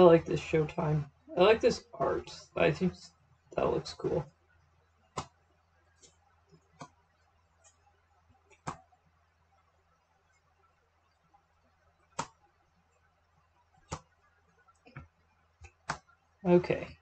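Playing cards tap and slide on a table.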